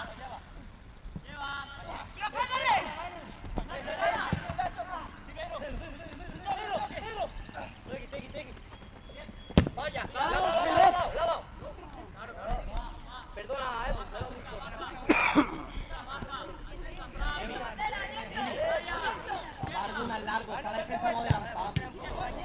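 Young men shout and call out across an open outdoor pitch.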